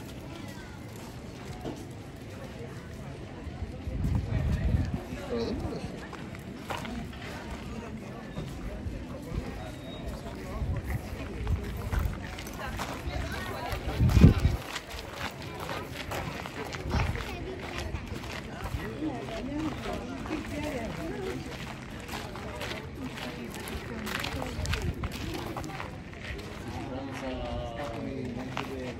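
Many people chat at a distance outdoors.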